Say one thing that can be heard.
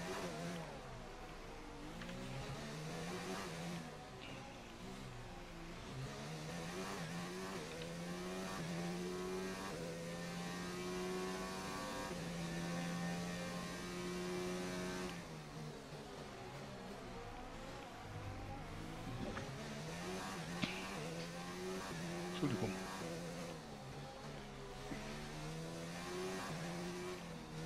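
A racing car engine screams, rising and falling in pitch as it shifts gears.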